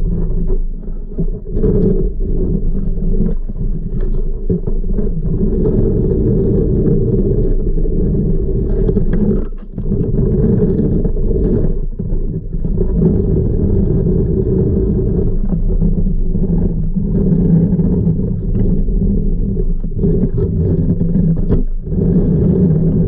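A pool vacuum head rumbles steadily as it scrapes across a pebbled floor underwater.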